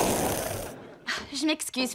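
A young woman speaks briefly nearby.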